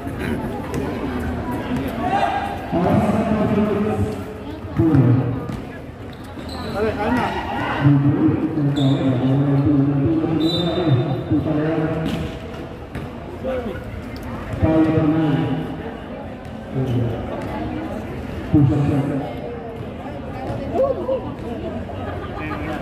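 Young men talk and shout nearby outdoors.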